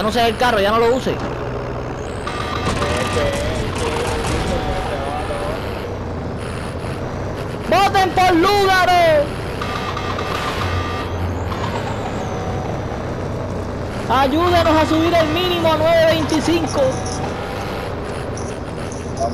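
A truck engine rumbles steadily as the truck drives.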